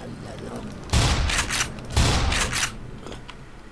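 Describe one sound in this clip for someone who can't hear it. A pump-action shotgun fires two blasts.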